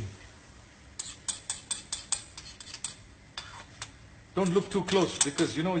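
A spoon scrapes and taps a plate.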